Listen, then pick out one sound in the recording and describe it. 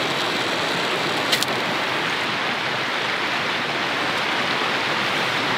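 A wood fire crackles softly in a small stove.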